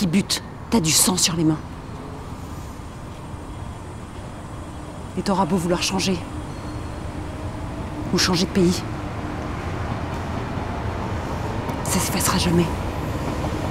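A woman speaks close by in a low, tense voice.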